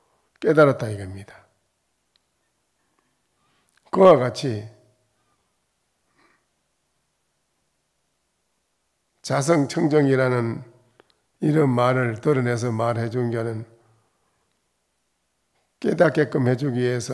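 An elderly man speaks calmly into a microphone, pausing between phrases.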